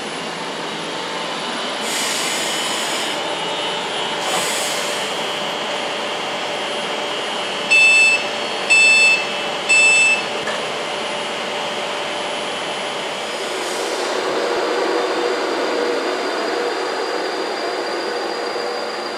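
An electric train rolls slowly past with a steady hum and rumble.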